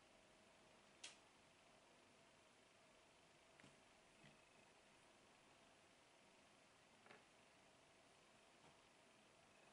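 Puzzle pieces click softly as they are placed on a table.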